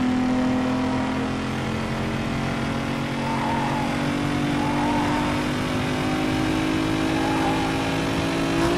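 Tyres hum and hiss on the road.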